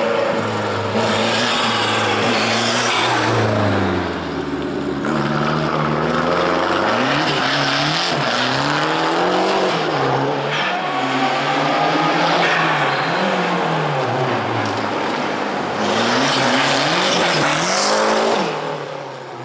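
Tyres screech loudly on asphalt.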